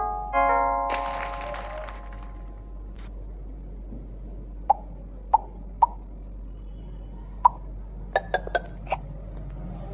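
A mobile game plays short chiming pops as balls merge.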